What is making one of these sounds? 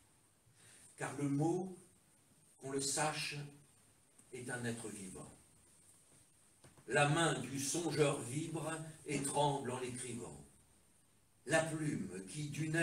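A man speaks aloud in measured phrases, close by.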